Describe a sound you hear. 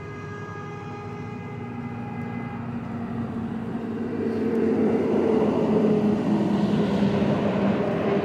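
A metal tool scrapes and pushes into a rubber tyre.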